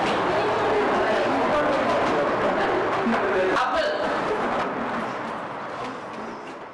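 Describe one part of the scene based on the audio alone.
A crowd of women chatter together.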